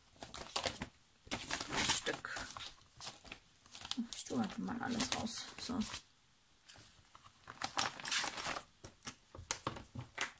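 Plastic sleeves rustle and crinkle as they are handled.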